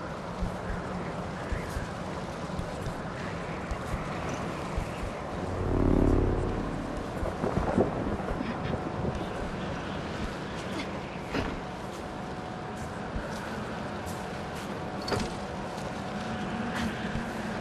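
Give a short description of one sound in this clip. A chain-link fence rattles as a person climbs along it.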